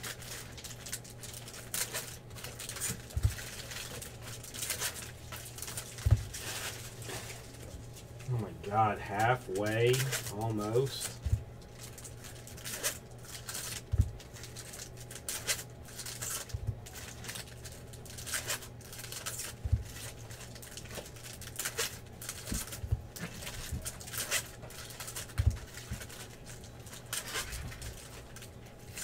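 Foil wrappers crinkle and tear as packs are opened by hand.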